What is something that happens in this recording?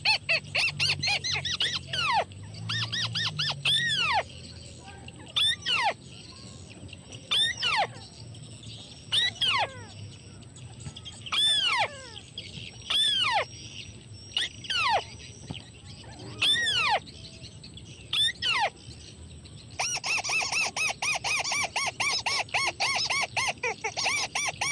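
A small bird chirps repeatedly in loud, sharp bursts.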